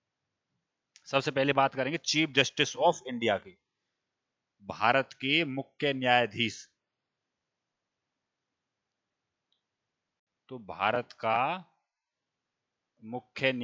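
A man speaks calmly and clearly into a close headset microphone, in short bursts with pauses.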